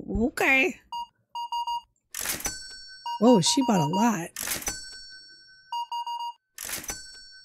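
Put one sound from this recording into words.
A cash register beeps as items are scanned.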